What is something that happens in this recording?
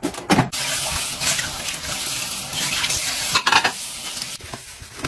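Tap water runs and splashes onto dishes.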